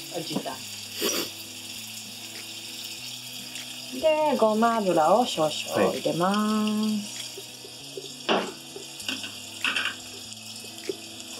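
Chopsticks clink against a metal pot.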